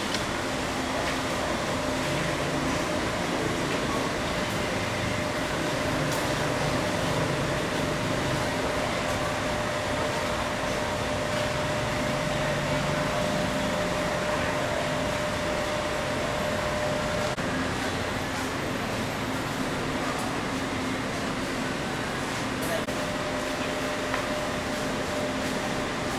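A motor scooter's engine hums nearby.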